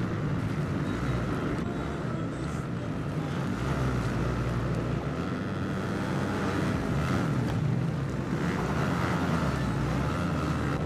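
Dirt bike engines roar and rev loudly.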